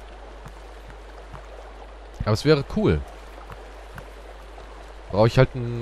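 A shallow stream flows and gurgles steadily.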